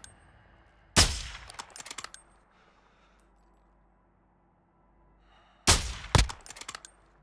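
A sniper rifle fires a loud, sharp shot with a ringing echo.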